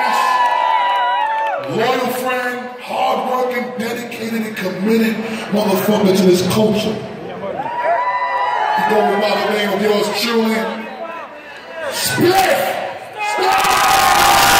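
A man talks with animation into a microphone, heard through loudspeakers in a large echoing hall.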